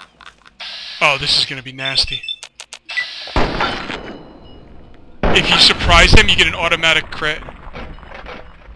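Gunshots ring out loudly and echo.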